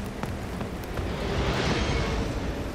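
Water rushes down a waterfall nearby.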